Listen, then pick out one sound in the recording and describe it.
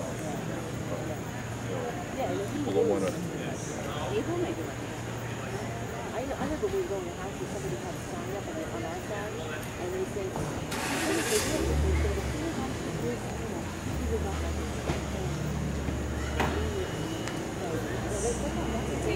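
A small group of men and women talk at a distance outdoors.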